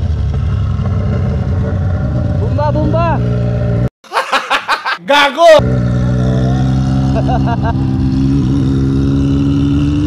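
A motorcycle engine drones steadily close by and revs now and then.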